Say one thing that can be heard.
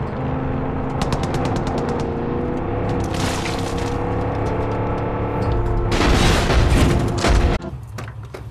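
A vehicle engine hums steadily as it drives.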